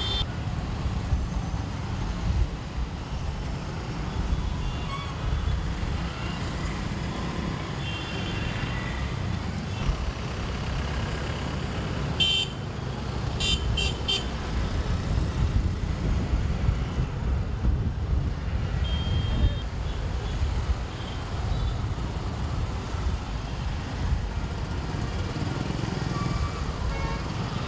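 Motorbike engines putter close by.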